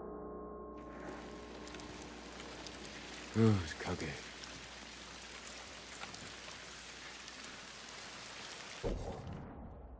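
Wind rustles through trees outdoors.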